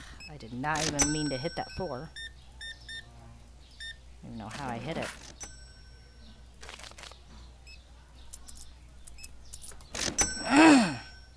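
A checkout scanner beeps.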